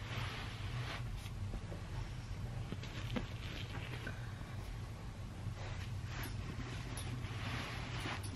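A boot sole scuffs and rustles on carpet.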